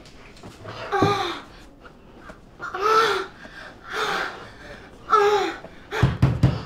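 A woman moans loudly in short bursts.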